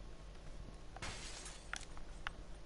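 A pistol is picked up with a short rustle and clatter.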